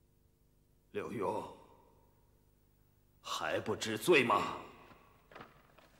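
A man speaks sternly and loudly.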